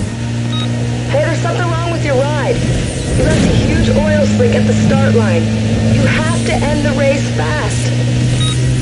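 Tyres squeal through fast turns.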